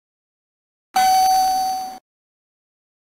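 An electronic chime rings once.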